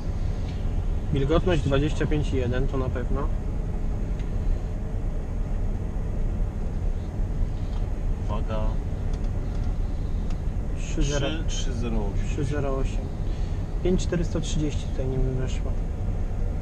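A man talks calmly over the engine noise.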